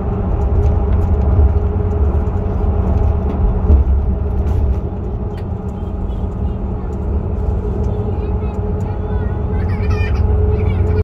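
A bus engine hums steadily with a low rumble from inside the cabin.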